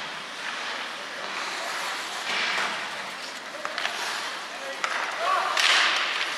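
Skate blades scrape and hiss across the ice in a large echoing arena.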